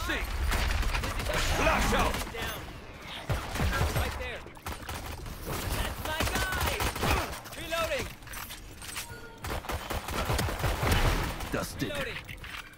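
A game's gunshots crack in quick bursts.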